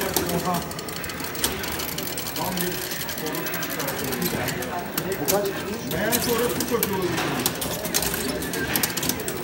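Fast electronic game music plays from an arcade cabinet.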